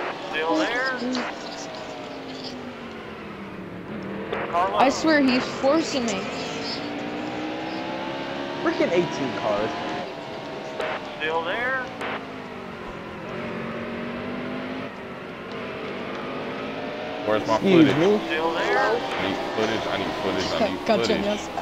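Engines of other race cars whine past nearby.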